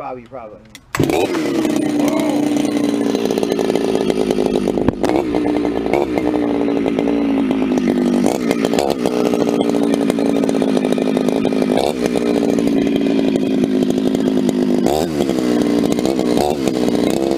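A chainsaw engine starts and idles loudly with a steady, rattling roar.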